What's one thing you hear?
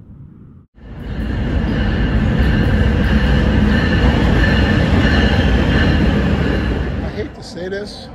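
A train rumbles loudly into a station and squeals along the rails.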